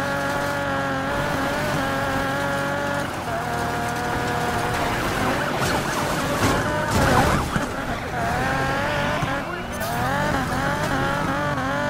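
Tyres skid and scrape on loose gravel.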